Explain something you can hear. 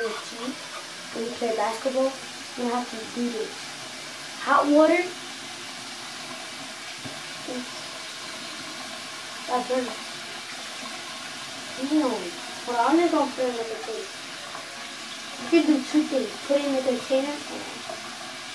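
A boy talks with animation, close by.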